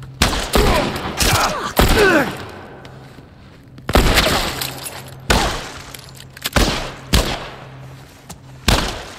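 A pistol fires loud shots that echo in a large room.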